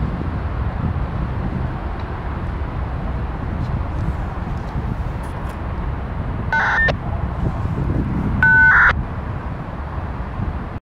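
Wind blows and rumbles across the microphone outdoors.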